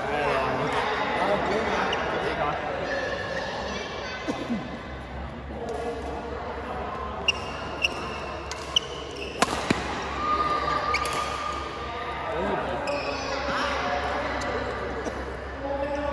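Men and women chat and call out in a large echoing hall.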